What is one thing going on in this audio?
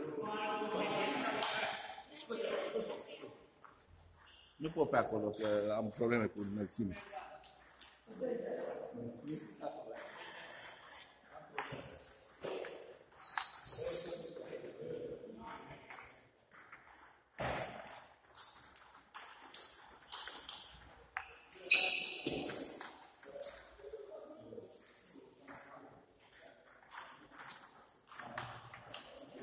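A ping pong ball clicks back and forth against paddles and a table.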